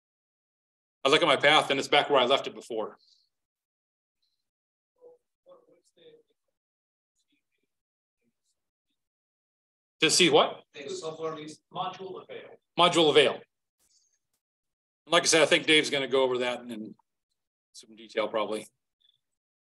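A man talks calmly through a microphone, in short bursts with pauses.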